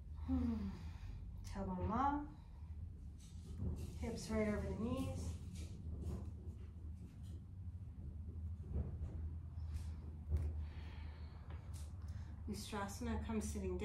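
A woman speaks calmly and slowly, close to a microphone.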